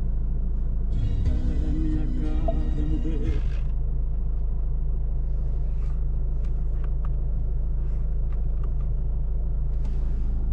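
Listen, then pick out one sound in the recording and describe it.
Tyres rumble over a bumpy dirt road.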